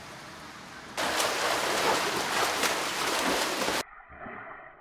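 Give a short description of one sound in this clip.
Water splashes as a swimmer churns through a pool.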